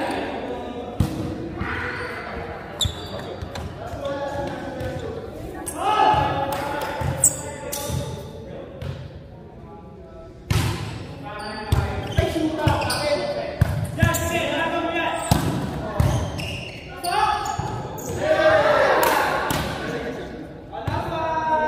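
A volleyball is hit with sharp slaps, echoing in a large hall.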